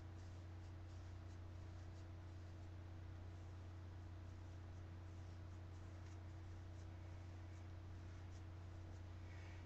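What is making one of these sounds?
A brush scrapes softly through hair.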